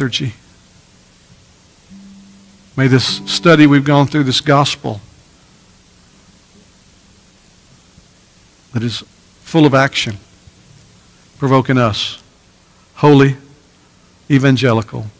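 A middle-aged man speaks with pauses through a microphone and loudspeakers.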